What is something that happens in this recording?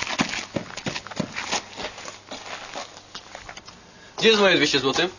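Footsteps crunch on rough ground.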